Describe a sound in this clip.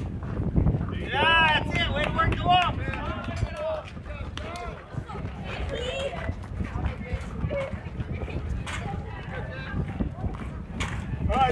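Young girls cheer and shout excitedly from a distance.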